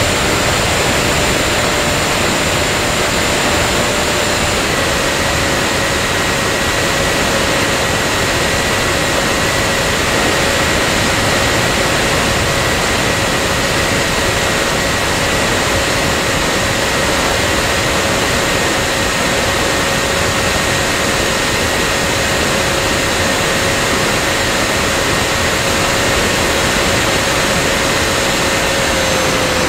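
An electric motor whines steadily at high speed.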